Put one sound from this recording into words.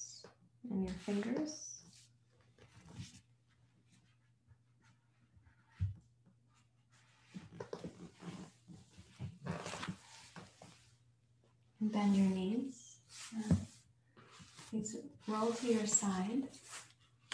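A woman speaks calmly and clearly into a nearby microphone.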